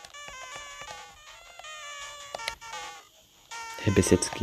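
Chiptune video game music plays a bouncy melody.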